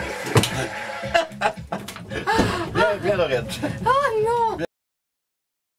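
A middle-aged woman laughs loudly close by.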